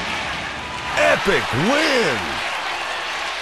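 A cheerful victory jingle rings out.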